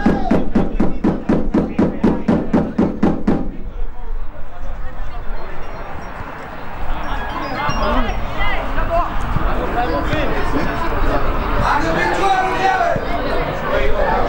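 A ball is kicked with dull thuds outdoors.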